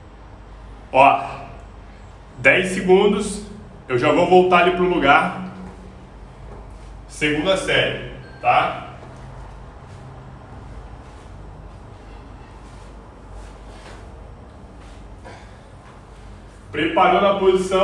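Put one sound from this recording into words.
A young man speaks close by in short bursts.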